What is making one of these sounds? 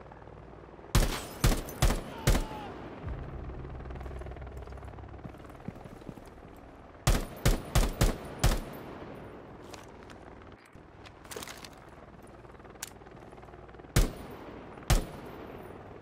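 A rifle fires single shots in quick bursts.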